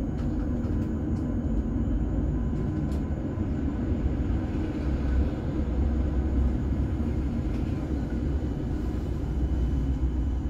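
A tram rumbles steadily along its tracks.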